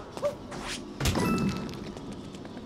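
A coin pickup chimes brightly.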